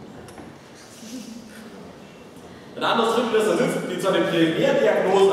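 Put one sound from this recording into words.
A man speaks with animation in a large echoing hall.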